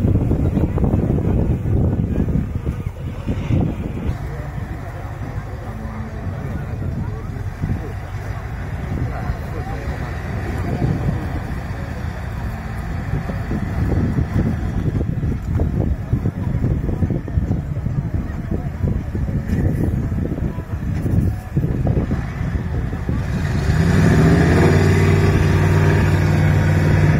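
A large truck engine rumbles and roars as it climbs over rough ground.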